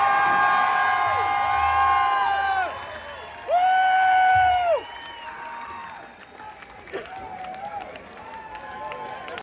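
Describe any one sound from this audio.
A crowd claps its hands.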